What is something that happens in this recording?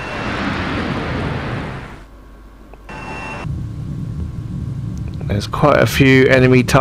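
A jet engine roars steadily.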